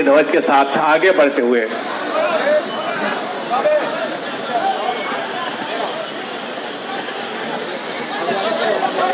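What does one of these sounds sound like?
A large outdoor crowd murmurs and shouts.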